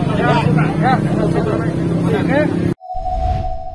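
A man speaks loudly and urgently close by.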